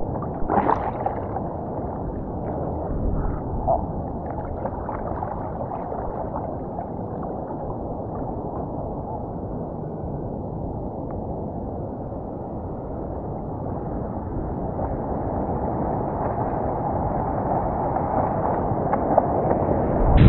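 Water sloshes and splashes close by, muffled and dull.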